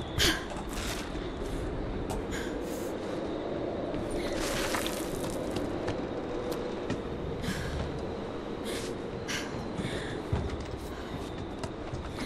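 Hands and boots knock and scrape on wooden beams during a climb.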